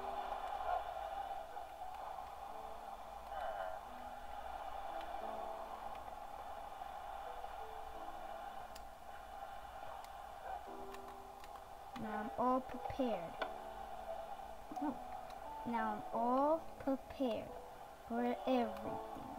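Soft electronic game music plays through a television speaker.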